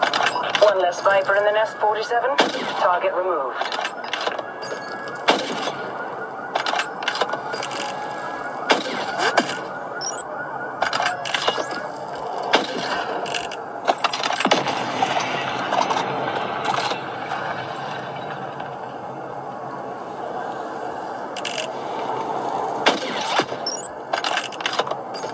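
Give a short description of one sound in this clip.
Sharp gunshots crack from a tablet's small speaker, again and again.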